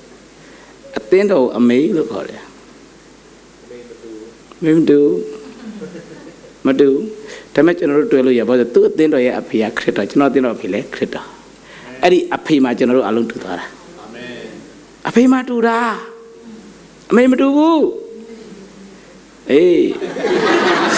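A man speaks with animation through a microphone, with short pauses.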